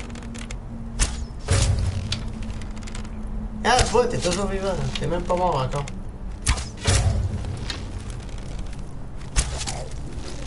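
A bow releases arrows with sharp twangs.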